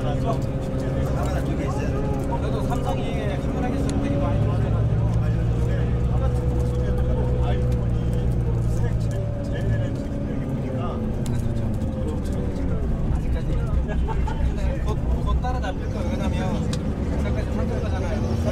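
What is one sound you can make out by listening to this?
Traffic rumbles past outdoors.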